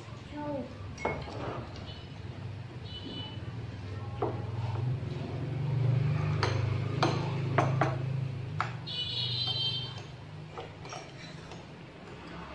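Spoons and chopsticks clink against ceramic bowls.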